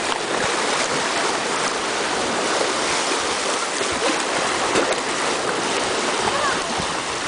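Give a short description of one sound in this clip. Small waves splash and wash against rocks close by.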